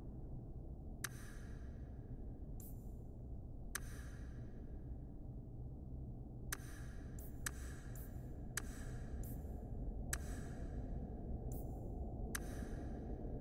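Short, sharp menu clicks sound every second or two, each with a brief ringing tail.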